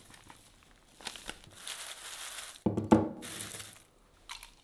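Nuts clatter as a hand stirs them in a glass bowl.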